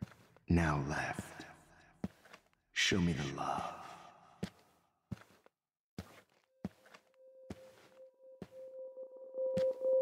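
Footsteps tap slowly on a hard floor.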